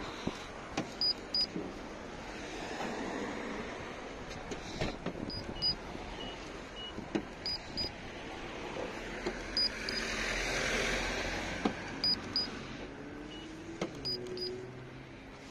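A handheld meter beeps in short, high double beeps.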